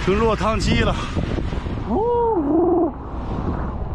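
A young man talks loudly and excitedly into a close microphone.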